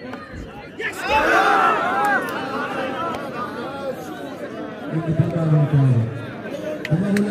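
A crowd cheers loudly and shouts.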